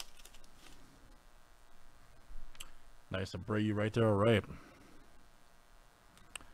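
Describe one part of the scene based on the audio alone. Trading cards slide and flick against each other.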